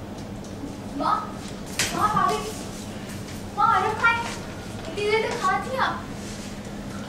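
A woman speaks sharply nearby.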